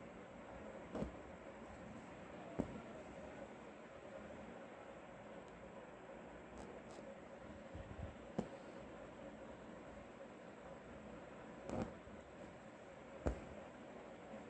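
Fingers tap and brush against cloth.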